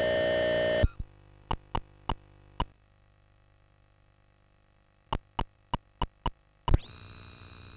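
A computer gives short clicks as keys are typed.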